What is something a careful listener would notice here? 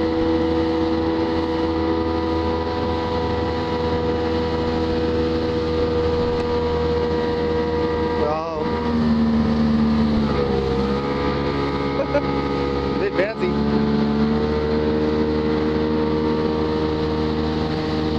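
Water churns and rushes in a boat's wake.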